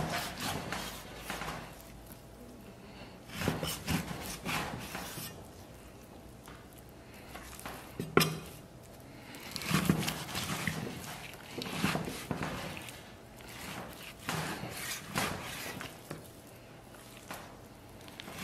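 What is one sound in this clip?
A cleaver chops through raw meat and thuds on a wooden board.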